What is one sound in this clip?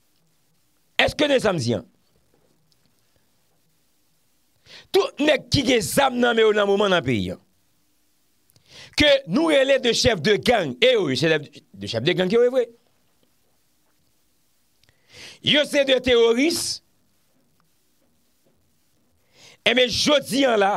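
A man speaks with animation close to a microphone, in short bursts with pauses.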